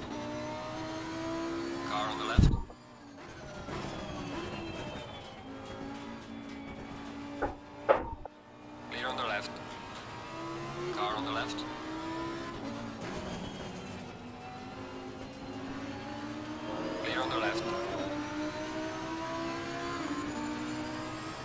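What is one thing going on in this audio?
A race car engine roars and revs up and down through gear changes.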